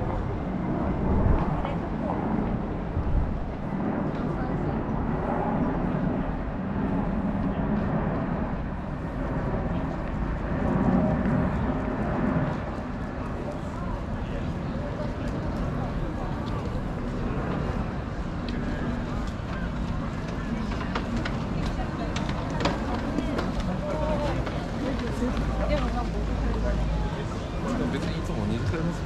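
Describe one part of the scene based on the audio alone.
Footsteps tap on pavement close by.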